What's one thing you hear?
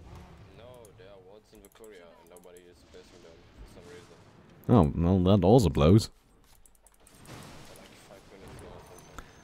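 A man talks with animation into a close microphone, loudly at moments.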